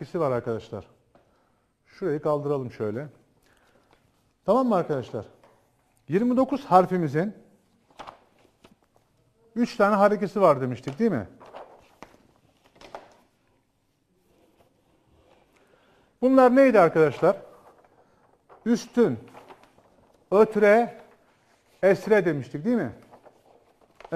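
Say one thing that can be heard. A man speaks calmly and clearly in short phrases, close to a microphone.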